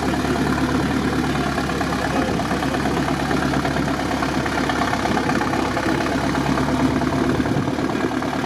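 Tyres churn and splash through mud and water.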